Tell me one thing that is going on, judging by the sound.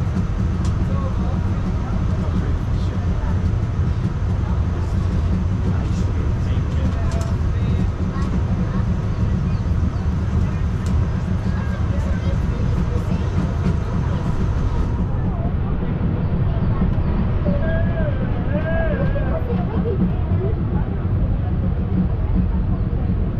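An open train car rumbles and rattles steadily along its track.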